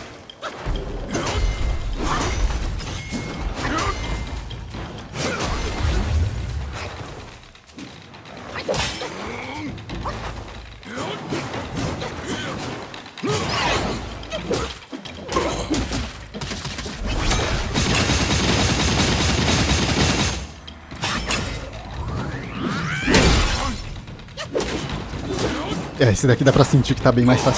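Metal weapons clash and strike with sharp impacts.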